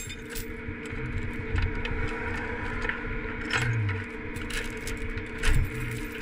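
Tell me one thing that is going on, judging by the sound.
A metal chain clinks and rattles against a concrete pole.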